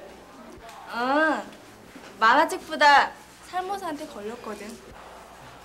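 A young woman speaks brightly up close.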